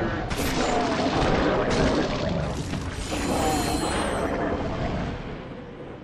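A huge creature roars and crashes as blows strike it.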